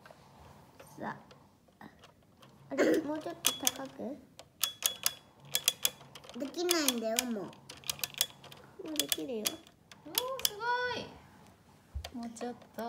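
Plastic toy trucks click and knock together as they are handled.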